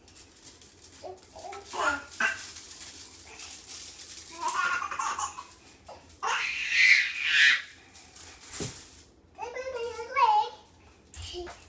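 A young girl squeals and babbles playfully close by.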